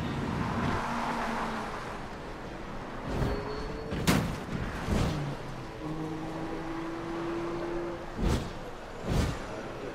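Car tyres screech while drifting.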